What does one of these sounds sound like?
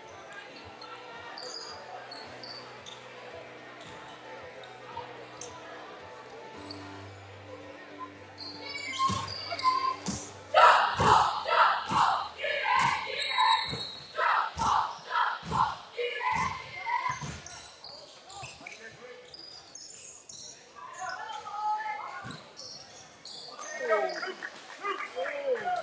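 A crowd of spectators murmurs and chatters in a large echoing gym.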